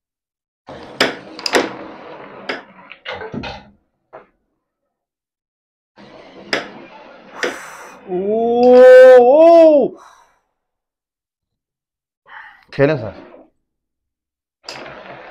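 A flicked carrom striker clacks against carrom pieces on a wooden board.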